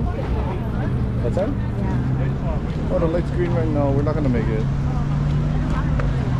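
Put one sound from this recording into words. Traffic hums steadily on a nearby city street.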